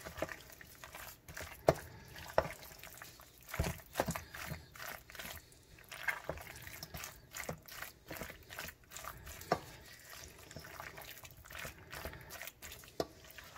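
A wooden spoon stirs and scrapes through a mixture in a metal bowl, with soft clinks and squelches.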